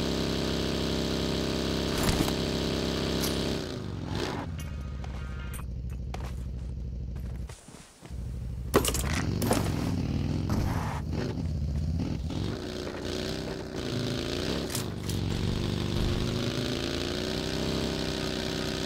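A small motor vehicle's engine drones and revs.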